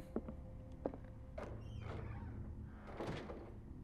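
Wooden cabinet doors creak open.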